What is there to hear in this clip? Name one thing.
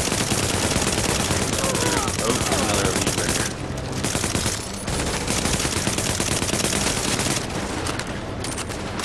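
Rapid gunfire crackles loudly.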